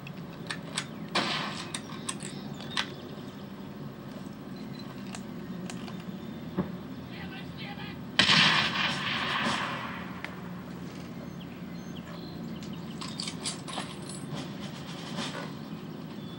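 Video game gunshots crack through a television speaker.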